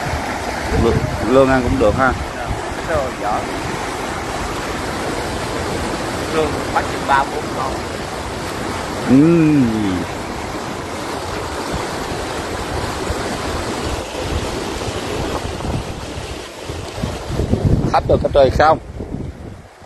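Men call out to each other outdoors.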